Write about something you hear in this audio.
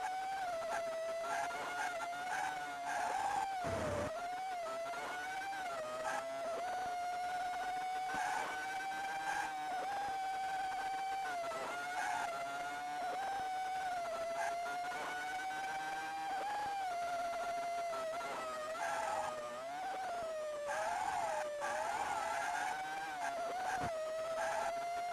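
A video game race car engine buzzes steadily, rising and falling in pitch as it speeds up and slows down.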